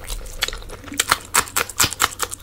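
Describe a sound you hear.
A green chilli crunches as it is bitten.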